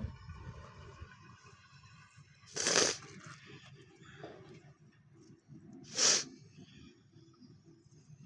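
Loose rock scrapes and crumbles as a hand pulls it away.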